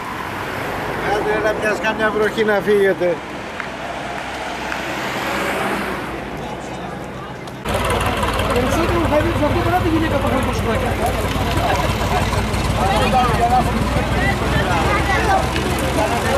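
A crowd of men and women talk and call out outdoors.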